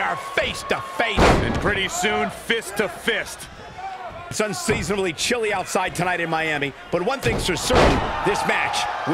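Bodies slam onto a wrestling ring mat.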